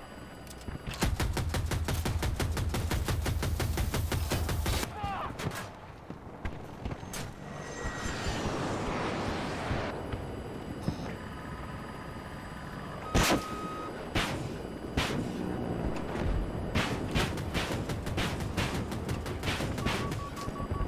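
A cannon fires in rapid bursts.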